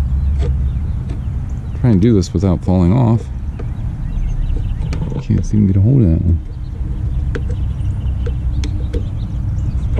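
A screwdriver scrapes and clicks against a metal screw.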